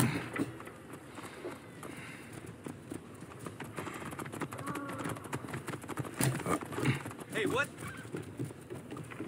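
Footsteps patter quickly across wooden planks and stone.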